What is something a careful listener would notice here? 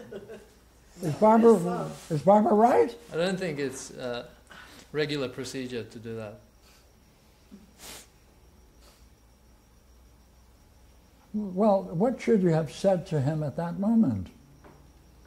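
An elderly man speaks calmly, pausing between phrases.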